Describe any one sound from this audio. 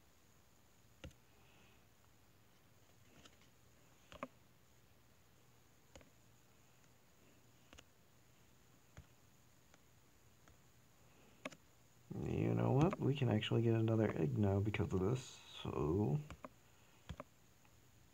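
Short game interface clicks sound as menus open and close.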